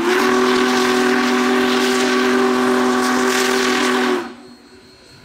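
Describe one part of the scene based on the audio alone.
A steam locomotive's whistle blows loudly and steadily, then stops.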